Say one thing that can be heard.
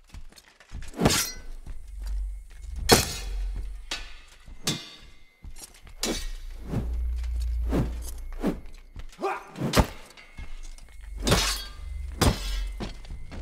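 Swords clash and strike in quick blows.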